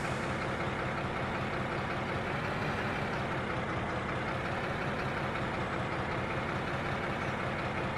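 Train wheels roll and clatter over rails.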